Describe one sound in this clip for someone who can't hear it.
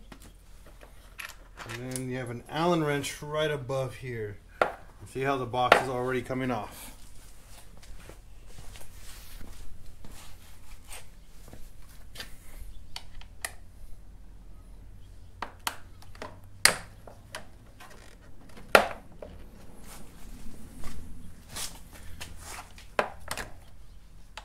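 Plastic and metal parts knock and click as they are handled up close.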